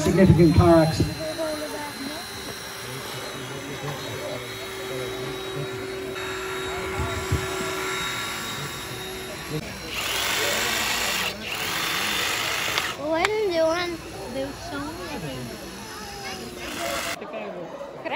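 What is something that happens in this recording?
A crowd of children and adults murmurs outdoors.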